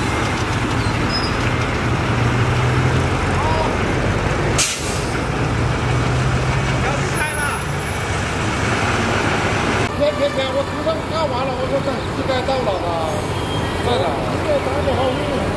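A bulldozer engine rumbles steadily nearby.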